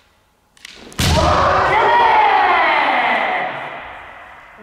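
A young man shouts a long, loud cry that echoes through a large hall.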